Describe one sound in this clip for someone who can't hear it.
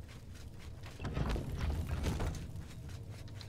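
A heavy stone door grinds and rumbles open.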